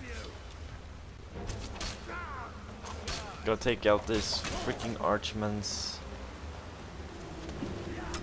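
Water rushes and churns over rocks.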